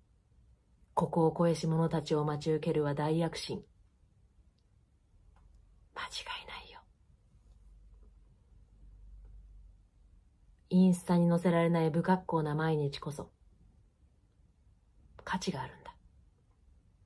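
A young woman talks up close, calmly and warmly, in short bursts with pauses.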